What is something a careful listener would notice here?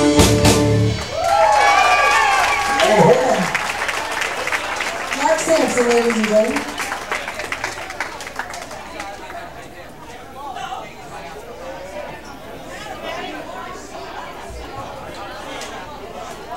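A live band plays loud amplified music.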